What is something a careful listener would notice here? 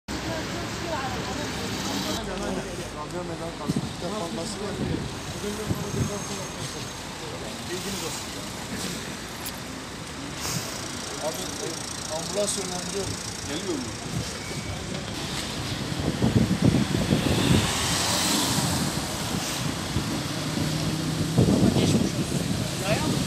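Traffic hums along a street.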